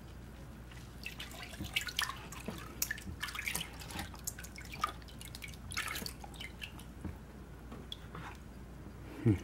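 Plastic pans knock and scrape against each other.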